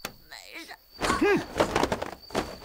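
A body falls heavily onto the ground.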